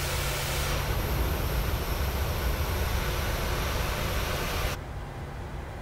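A jet's engines roar steadily close by, outdoors.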